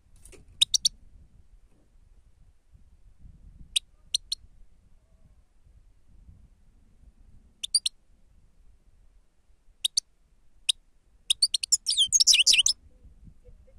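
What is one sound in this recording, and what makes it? A small bird chirps in short, sharp calls, ending in a quick twittering burst.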